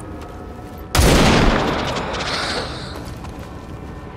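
A rifle fires a loud burst of shots.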